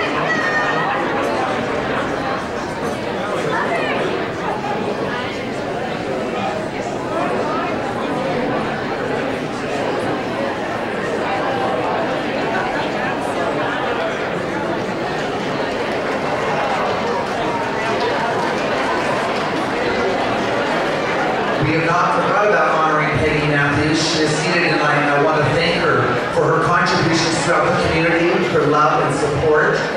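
A large crowd chatters and murmurs in a big echoing hall.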